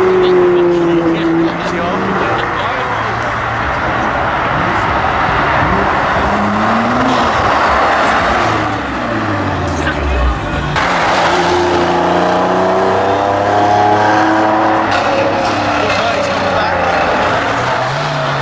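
A car engine's pitch rises and falls as it revs and shifts gears.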